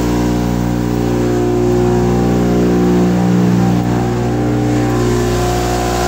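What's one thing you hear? A stationary generator engine runs with a steady drone.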